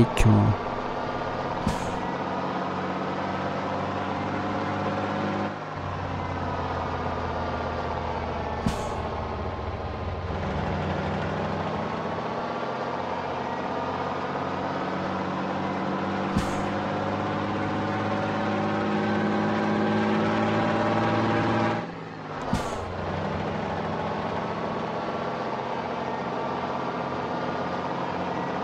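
A truck engine hums steadily, rising and falling in pitch as gears change.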